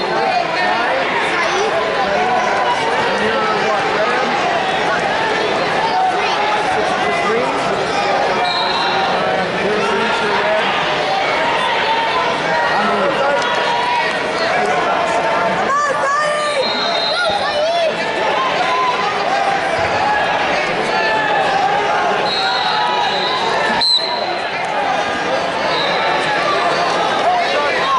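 A large crowd murmurs and chatters throughout a big echoing hall.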